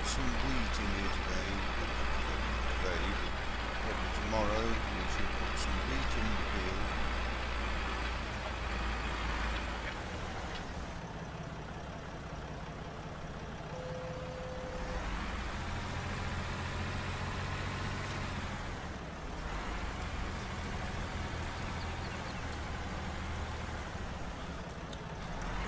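A disc harrow rattles over the soil.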